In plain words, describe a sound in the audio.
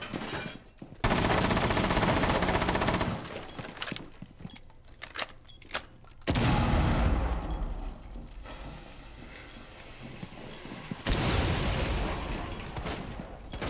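Rapid bursts of gunfire rattle out.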